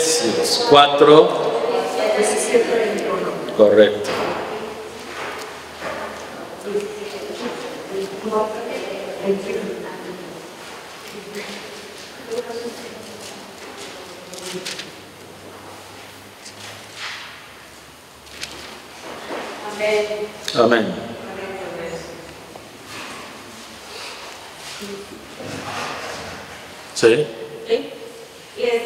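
A man speaks calmly into a microphone in an echoing room.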